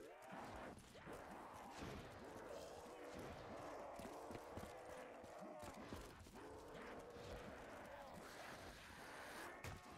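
Zombies groan and snarl nearby.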